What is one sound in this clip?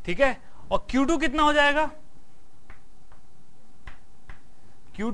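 A middle-aged man speaks clearly and expressively, as if lecturing.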